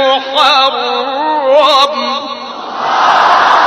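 A man chants in a wavering, melodic voice through a loudspeaker.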